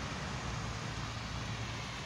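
Water fountains splash and spray nearby.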